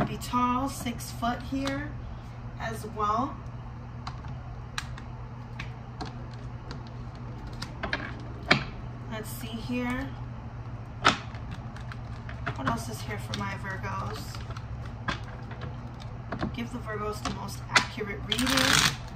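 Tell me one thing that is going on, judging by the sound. Playing cards shuffle and flick against each other.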